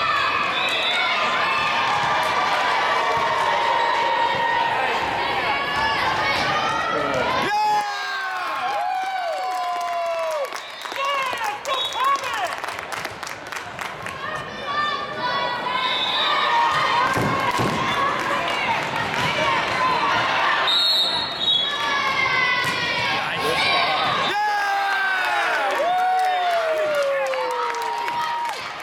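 Young women call out and cheer in a large echoing hall.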